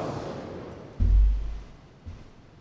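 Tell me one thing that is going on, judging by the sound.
A man bumps a wooden stand with a dull thud.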